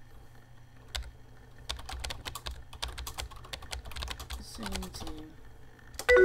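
Computer keys click rapidly as someone types.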